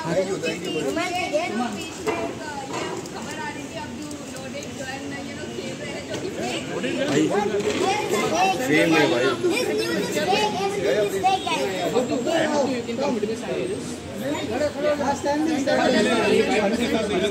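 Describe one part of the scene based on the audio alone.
Several men talk over one another in a lively crowd.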